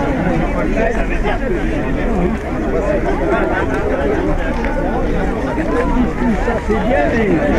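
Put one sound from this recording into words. A crowd of men and women talks and chatters nearby outdoors.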